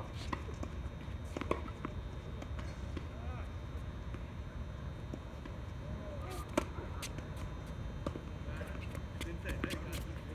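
Sneakers squeak and shuffle on a hard court.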